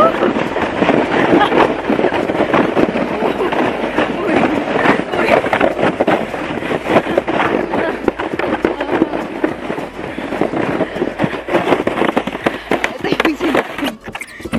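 A sled scrapes over snow.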